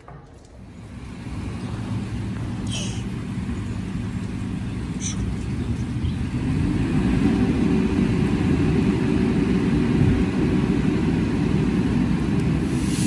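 Wind blows outdoors, rumbling steadily.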